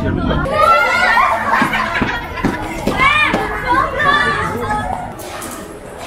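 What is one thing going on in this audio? Young women shriek and talk excitedly close by.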